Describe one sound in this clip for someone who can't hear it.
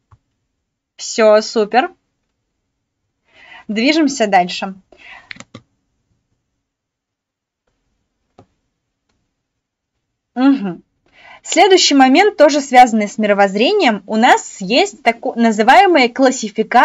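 A young woman speaks calmly and clearly into a close microphone.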